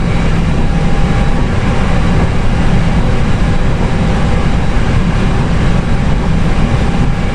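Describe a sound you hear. A jet engine rumbles steadily at idle.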